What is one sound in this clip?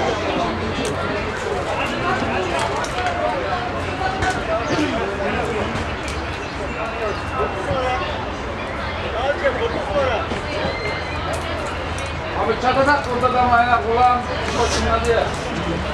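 Several men shout and talk outdoors.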